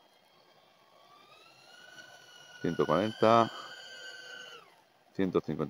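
A drone's motors whine at high pitch, rising and falling as it speeds up.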